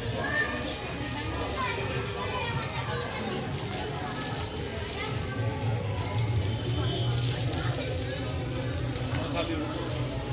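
A crowd of men and women chatters indoors.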